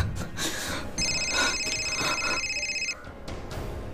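A phone rings with a high electronic tone.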